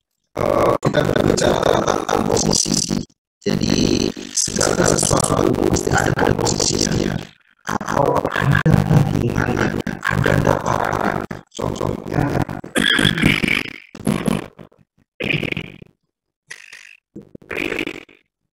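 A man speaks steadily through an online call, as if lecturing.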